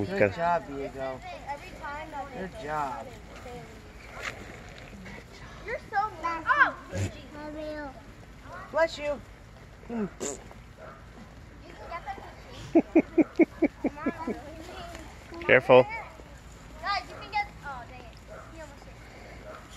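A toddler babbles and chatters close by.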